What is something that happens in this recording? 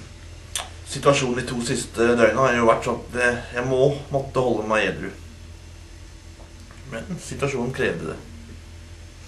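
A young man talks with animation, close by.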